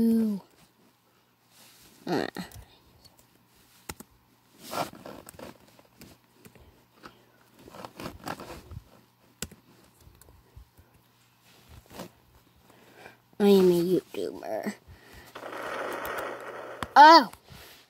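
A finger taps on a tablet touchscreen.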